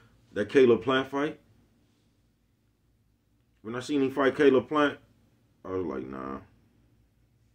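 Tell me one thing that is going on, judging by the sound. A middle-aged man speaks calmly into a nearby microphone, in short bursts with pauses.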